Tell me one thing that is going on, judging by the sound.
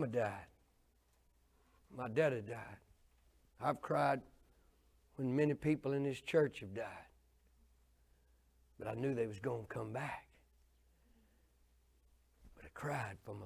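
An older man speaks calmly into a microphone in short phrases with pauses.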